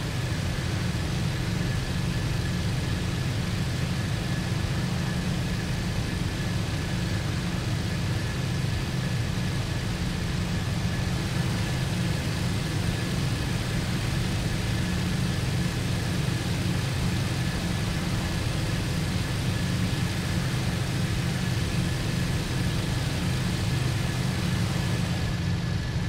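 Wind rushes past the cockpit.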